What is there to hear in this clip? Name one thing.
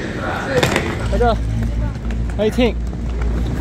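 Suitcase wheels rumble over paving stones.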